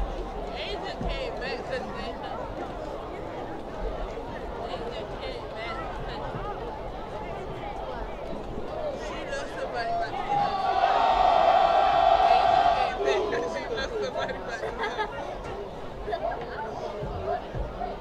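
A crowd chatters and calls out in a large open-air stadium.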